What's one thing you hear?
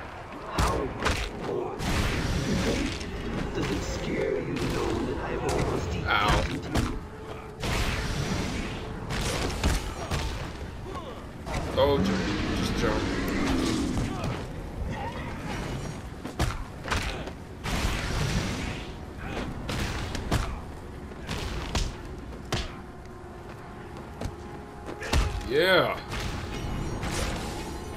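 Punches and kicks thud and crack in quick succession.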